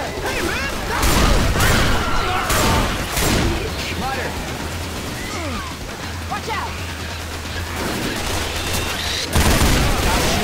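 A shotgun fires loud, booming shots.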